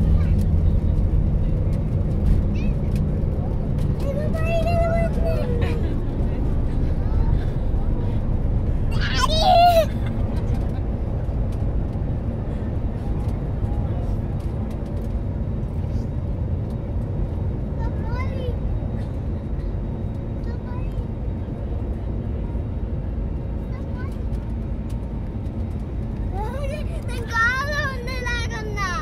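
A plane's engines drone steadily in the cabin.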